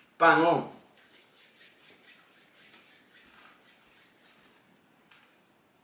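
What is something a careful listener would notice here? A man rubs his hands together briskly.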